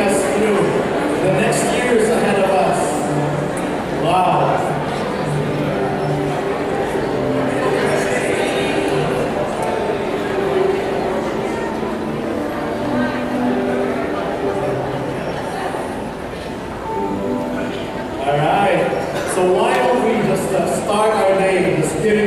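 A choir sings together through loudspeakers in a large echoing hall.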